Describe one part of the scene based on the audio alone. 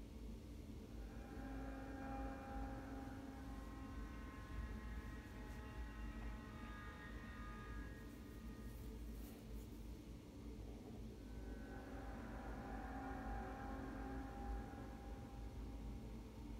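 Soft music with steady held tones plays from a speaker.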